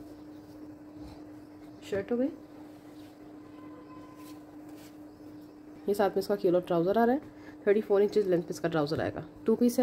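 Cloth rustles softly as hands handle it.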